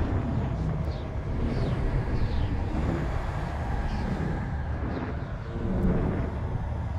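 A spaceship engine rumbles deeply and steadily.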